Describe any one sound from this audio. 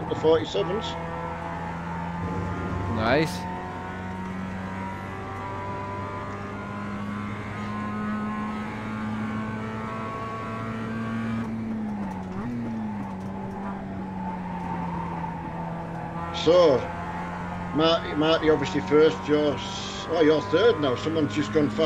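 A racing car engine drones steadily, its pitch rising and falling with the gears.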